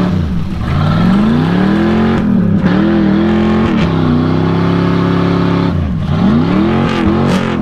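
Mud splatters from spinning tyres.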